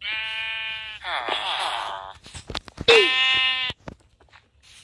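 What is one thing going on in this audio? A sheep bleats nearby.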